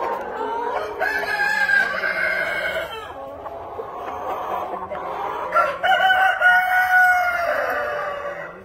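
Roosters crow loudly and at length, close by.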